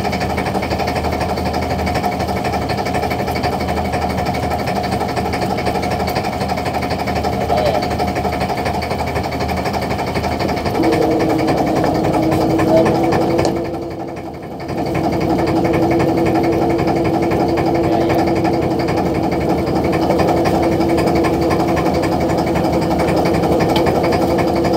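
A boat engine hums steadily nearby.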